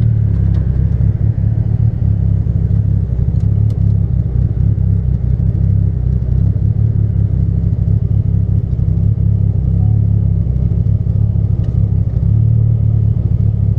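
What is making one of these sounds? A car engine drones loudly and steadily, heard from inside.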